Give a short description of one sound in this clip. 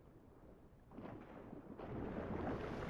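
Water splashes as a swimmer surfaces.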